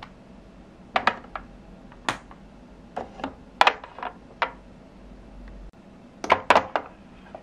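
Small plastic toy pieces clack onto a hard plastic surface.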